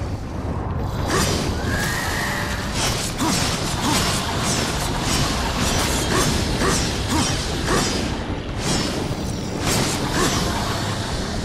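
Electric blasts crackle and zap in quick bursts.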